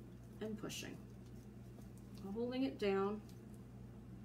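A woman speaks briefly and calmly, close by.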